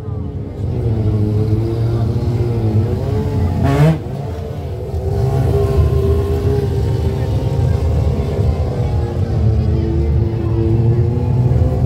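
A motorcycle engine roars and revs loudly nearby.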